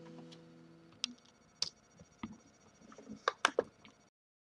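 Fingers knock and tap softly on a guitar.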